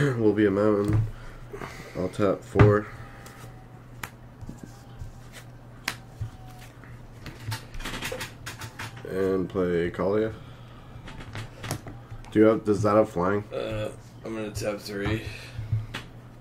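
Playing cards slide and tap on a soft mat.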